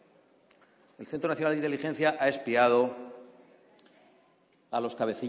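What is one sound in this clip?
A man speaks firmly into a microphone in a large, echoing hall.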